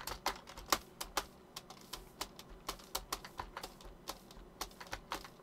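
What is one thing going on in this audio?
Footsteps thud softly on grass in a quick, steady rhythm.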